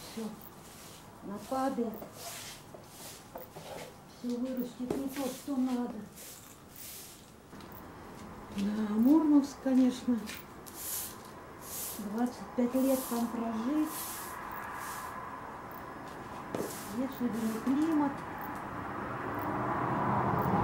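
A broom sweeps a hard floor in short, brisk strokes.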